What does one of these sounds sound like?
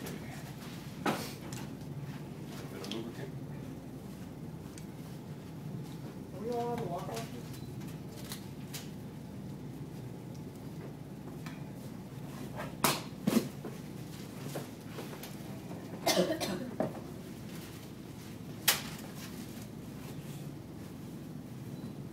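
Paper rustles and crinkles as a man handles it.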